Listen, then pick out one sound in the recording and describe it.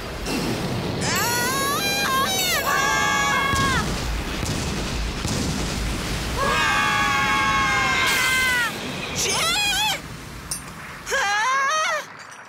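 A young boy shouts with excitement.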